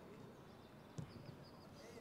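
A football is kicked hard with a dull thud.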